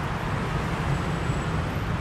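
A motorbike engine hums as it passes.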